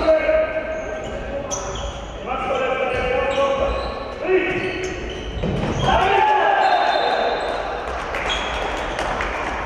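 Sneakers squeak sharply on a hard floor in a large echoing hall.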